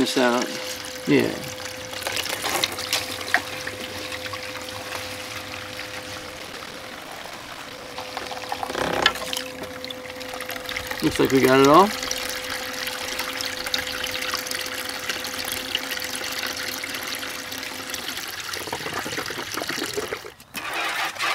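Water trickles and splashes steadily close by.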